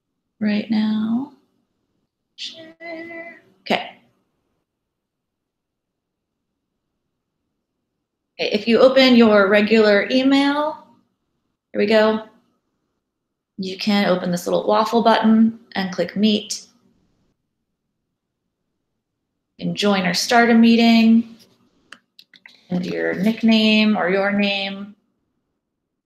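A woman speaks calmly through an online call microphone, pausing between phrases.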